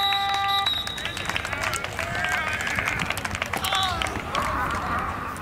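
Young men shout and call to each other far off across an open field.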